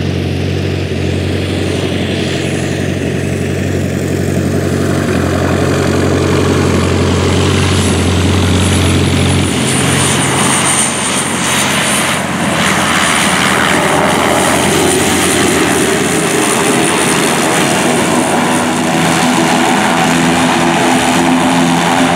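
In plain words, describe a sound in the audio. A propeller plane's engine drones and roars loudly nearby.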